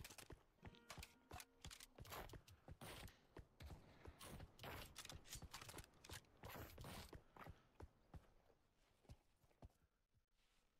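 Footsteps run quickly across hard stone ground.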